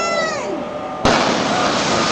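Demolition charges go off with a sharp blast.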